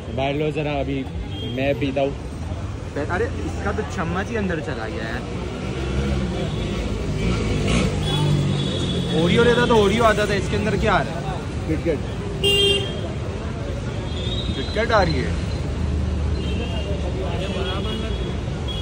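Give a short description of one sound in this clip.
A busy street crowd murmurs outdoors.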